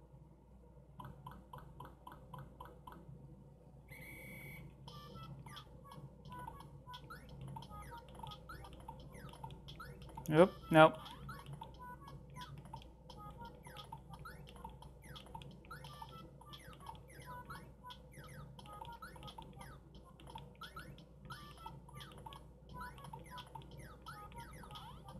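A handheld game console plays bleeping electronic music and sound effects.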